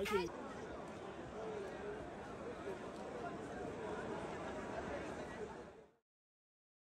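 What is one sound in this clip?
A large crowd of men and women murmurs and chatters outdoors.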